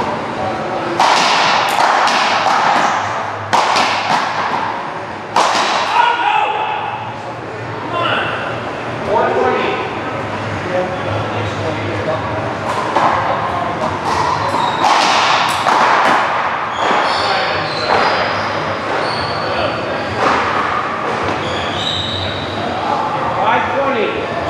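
A rubber ball smacks hard against a wall and floor in a large echoing court.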